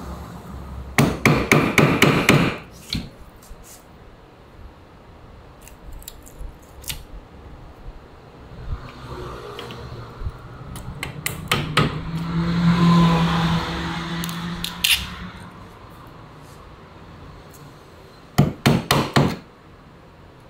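A mallet taps a chisel into wood in quick bursts.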